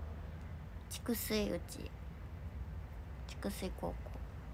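A young woman speaks softly and briefly, close by.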